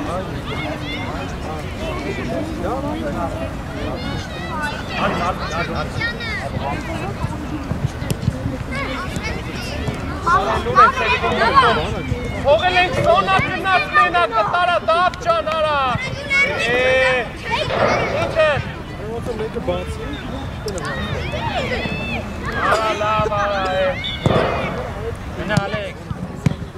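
Young boys shout to each other outdoors.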